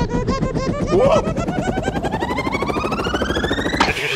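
A small creature laughs in a squeaky, high voice.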